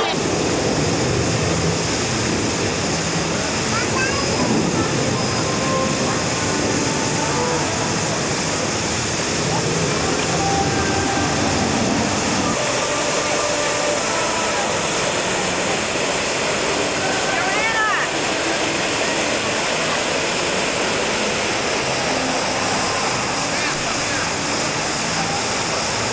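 A fountain splashes and roars steadily nearby, outdoors.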